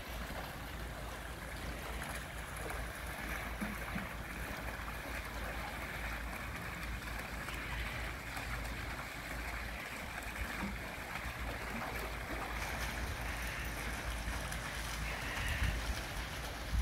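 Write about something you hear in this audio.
A person swims, splashing softly in the water.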